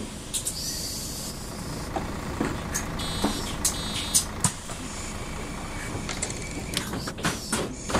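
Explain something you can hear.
A bus engine rumbles steadily at idle.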